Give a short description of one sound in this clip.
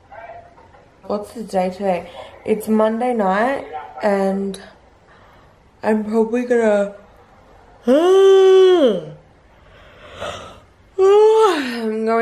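A young woman talks animatedly, close up.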